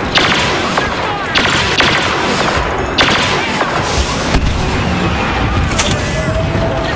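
Blaster rifles fire in rapid bursts.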